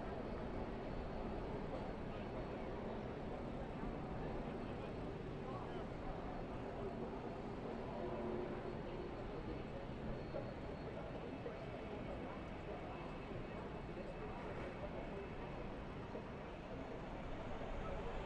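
Race trucks roar steadily around a track at speed.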